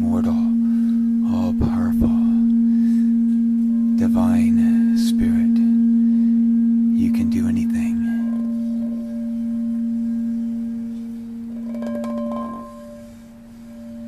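A singing bowl hums with a steady, ringing tone as a wooden stick rubs around its rim.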